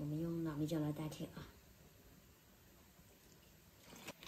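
Liquid pours from a bottle into a bowl.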